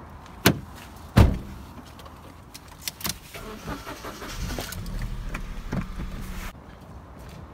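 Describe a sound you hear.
A car engine hums steadily inside a car.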